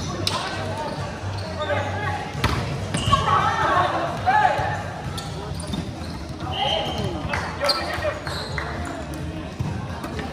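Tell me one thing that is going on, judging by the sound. Players shout and call out to each other across the hall.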